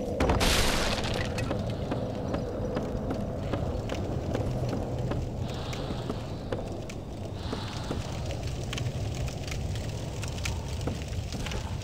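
Footsteps thud on creaking wooden boards.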